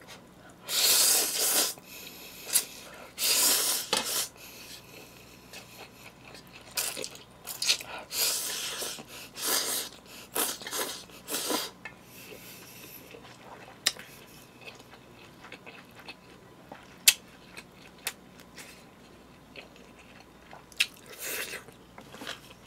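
A young man loudly slurps noodles close by.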